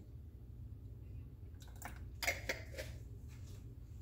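An egg cracks against the edge of a bowl.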